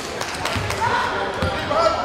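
A basketball thumps as it is dribbled on the court.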